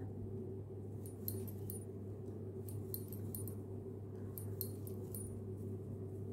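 A metal crochet hook clicks lightly as it works through yarn.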